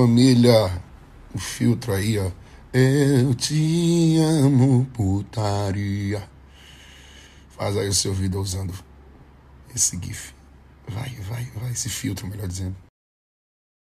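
A man sings close to a phone microphone.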